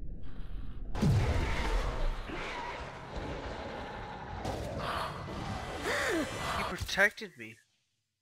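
A large creature growls deeply.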